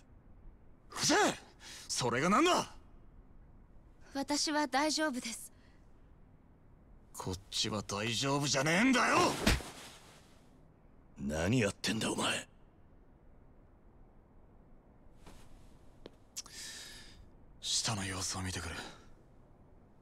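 A second man shouts angrily.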